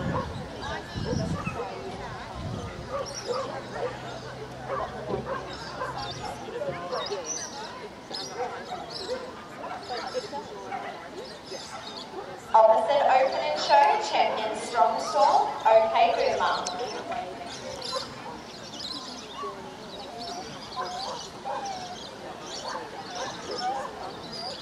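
Several people talk quietly in the background outdoors.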